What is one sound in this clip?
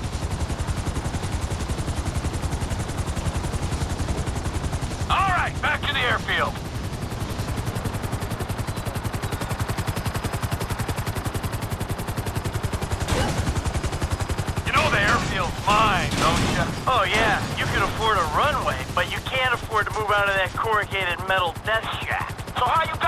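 A helicopter's rotor chops steadily and quickly overhead.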